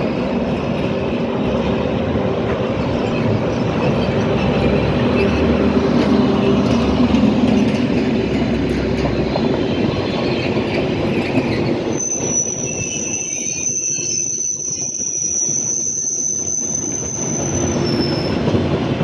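A train rumbles past close by on the tracks.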